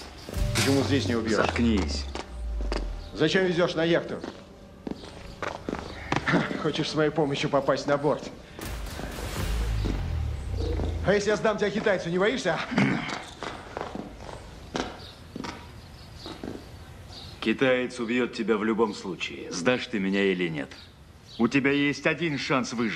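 A second man answers forcefully up close.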